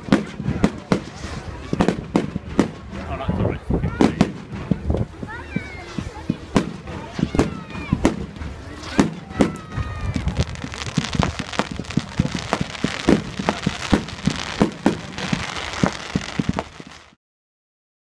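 Fireworks bang and pop rapidly outdoors.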